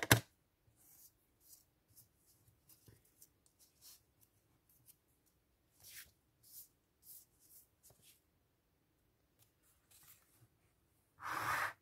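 Paper rubs and scrapes on a table.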